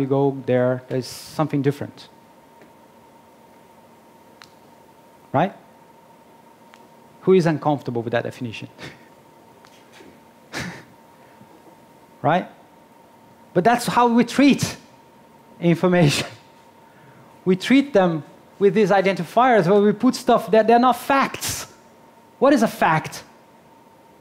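A man speaks with animation through a microphone, pausing often.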